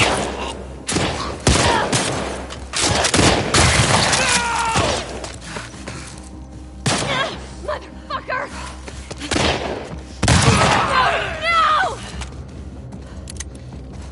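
Gunshots ring out loudly.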